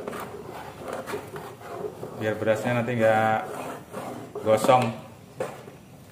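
A ladle scrapes and stirs in a metal pot.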